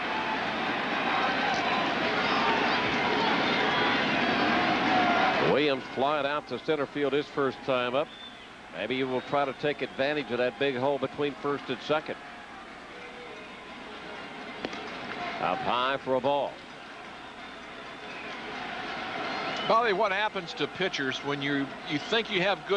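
A large stadium crowd cheers loudly, then settles to a murmur.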